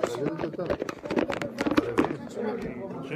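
Fingers rub and bump against a phone microphone.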